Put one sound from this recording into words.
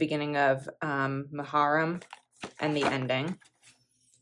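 Paper pages rustle as a calendar page is flipped over.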